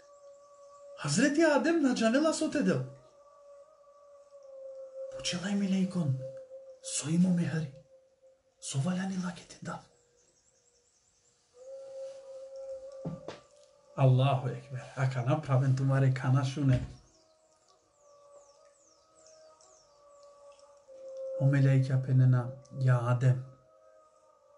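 A man speaks with animation close to the microphone, in short bursts with pauses.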